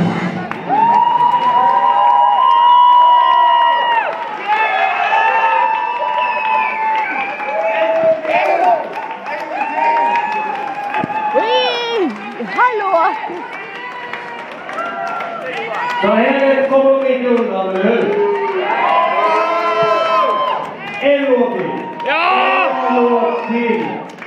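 A live band plays loud rock music through amplifiers in a large echoing hall.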